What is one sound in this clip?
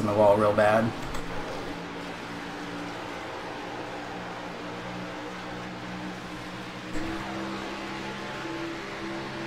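Race car engines drone steadily.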